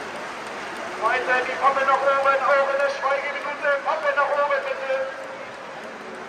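A stadium crowd sings a chant together loudly.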